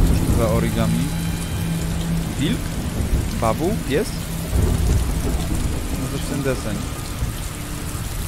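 A man talks casually and close up into a microphone.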